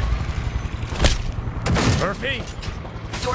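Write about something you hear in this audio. A pistol fires single gunshots.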